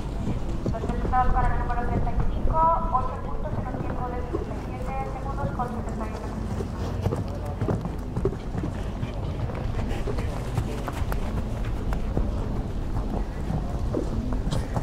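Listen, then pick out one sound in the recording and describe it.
A horse's hooves thud on soft sand at a canter.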